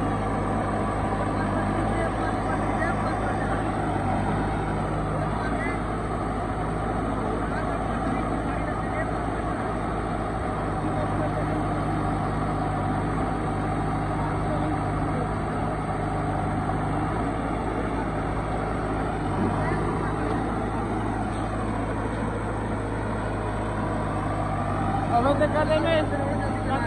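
A tractor engine idles steadily close by.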